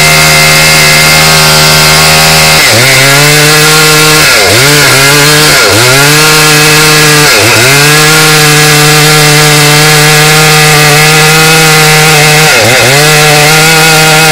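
A chainsaw engine runs loud and close, its pitch dipping and rising again several times.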